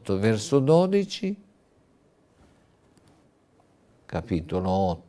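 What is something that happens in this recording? An elderly man speaks calmly and clearly into a microphone, pausing between phrases.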